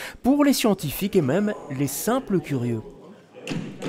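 A man speaks with animation over loudspeakers in a large echoing hall.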